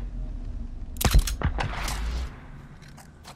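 A rifle shot cracks loudly and echoes.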